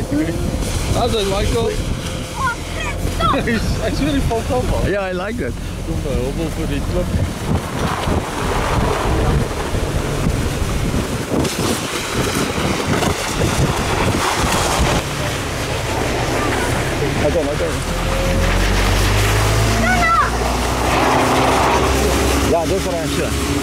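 A mat scrapes and slides over sandy ground.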